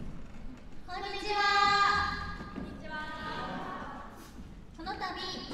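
Two young women speak into microphones over a loudspeaker in a hall.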